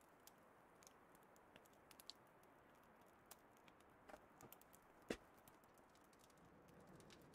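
A campfire crackles and pops softly as it catches.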